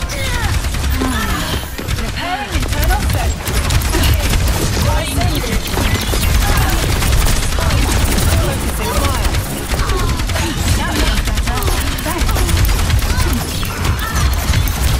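Rapid energy weapons fire and zap throughout.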